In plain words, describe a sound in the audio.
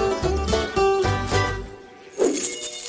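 A cheerful game jingle plays.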